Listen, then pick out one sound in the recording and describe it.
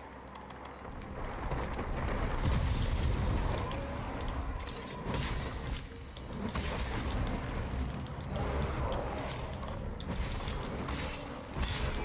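A huge creature growls and rumbles deeply.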